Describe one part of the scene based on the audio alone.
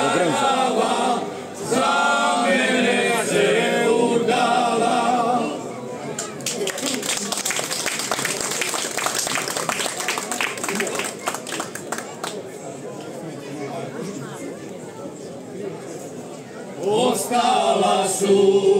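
A group of older men sing together through microphones.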